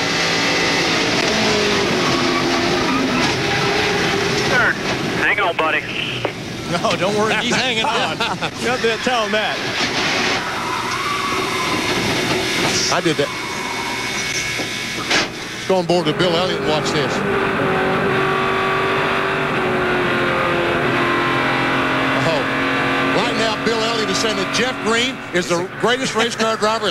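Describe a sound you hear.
Racing car engines roar at high speed.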